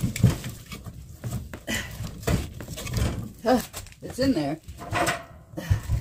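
Logs of wood knock against metal as they are placed in a stove.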